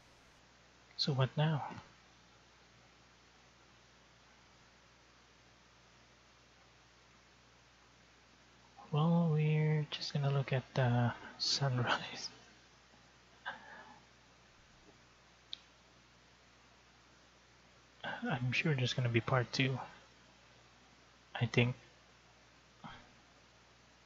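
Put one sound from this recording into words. A young man speaks calmly into a microphone in short bursts.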